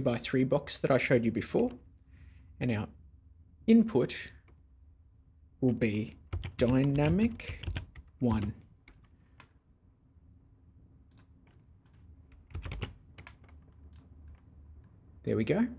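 A man talks calmly and closely into a microphone, in short bursts.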